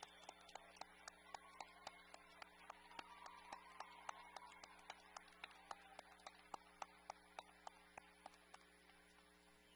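A large crowd claps and cheers in an echoing hall.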